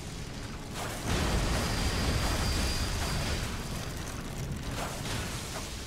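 A heavy blast roars and hisses.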